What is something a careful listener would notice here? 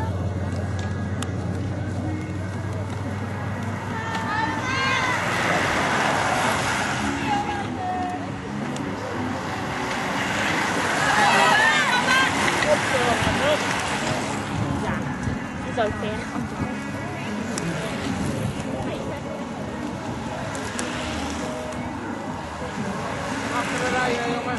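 A group of bicycles whirs past on a paved road.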